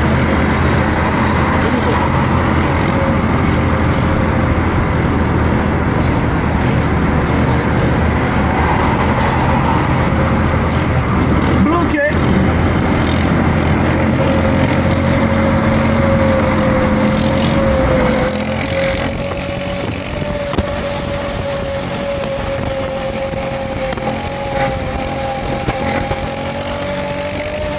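A quad bike's engine drones nearby.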